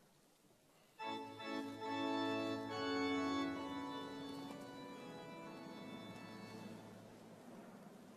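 A choir sings in a large echoing hall.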